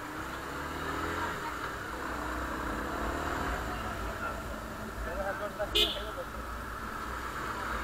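Wind rushes past a moving motorcycle.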